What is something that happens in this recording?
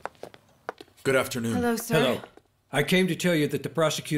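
An older man speaks loudly and tensely, close by.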